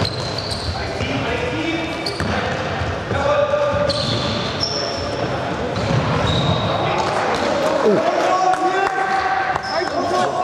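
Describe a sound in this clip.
A ball thuds when kicked.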